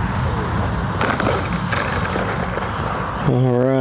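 A model jet's wheels touch down and roll bumping on asphalt.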